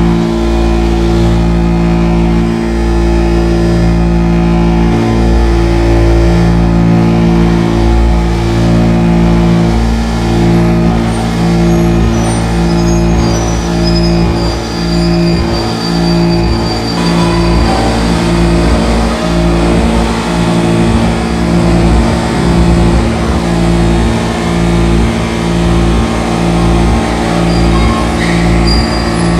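Layered electronic drones hum and pulse steadily throughout.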